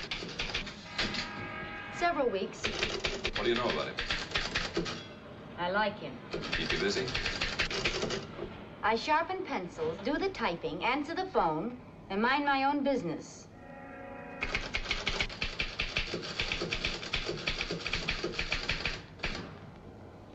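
A typewriter clatters with quick, rapid keystrokes.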